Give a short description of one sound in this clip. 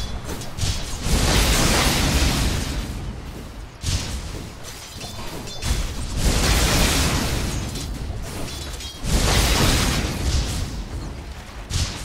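Bright magical blasts whoosh and boom.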